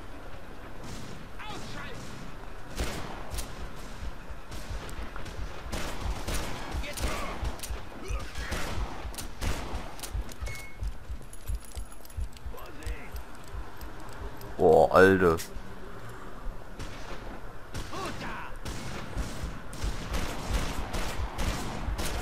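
Gunshots fire in rapid bursts, echoing between walls.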